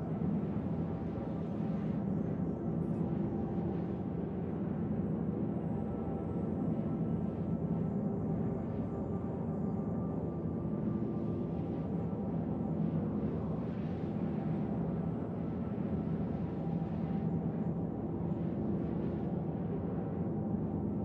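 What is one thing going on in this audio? A spaceship engine drones steadily with a deep hum.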